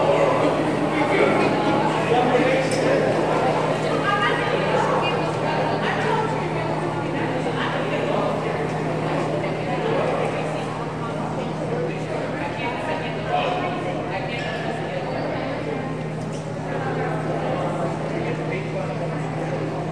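A crowd of people chatter throughout a large echoing hall.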